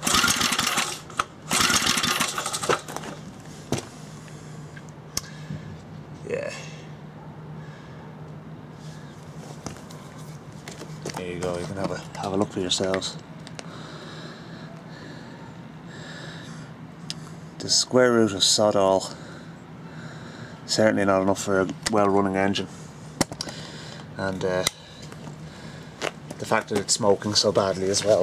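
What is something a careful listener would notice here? A small engine is cranked by its pull cord, whirring in short bursts.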